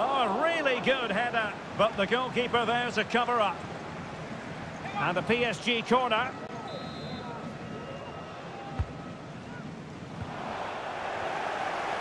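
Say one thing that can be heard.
A large stadium crowd murmurs and swells into a roar.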